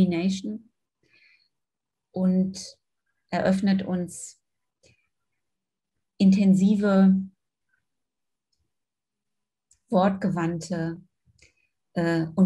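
A middle-aged woman speaks calmly in short phrases over an online call.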